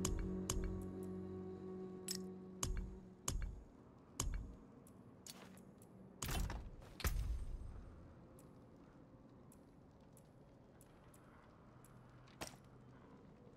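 Game menu sounds click and chime.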